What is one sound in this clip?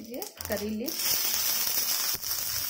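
Oil sizzles in a pan and crackles loudly as leaves drop in.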